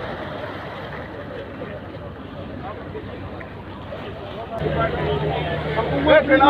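A crowd of men murmurs and talks nearby outdoors.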